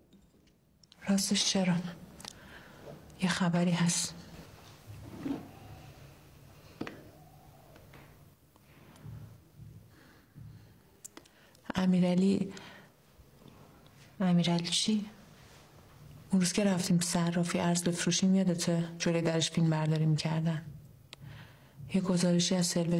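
A woman speaks quietly and earnestly, close by.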